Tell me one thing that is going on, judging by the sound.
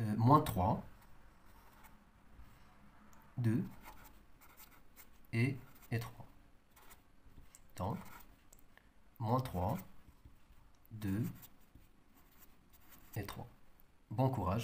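A marker squeaks and scratches as it writes on a whiteboard.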